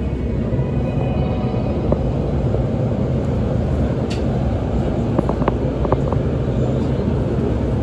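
A train pulls away and rolls along the track.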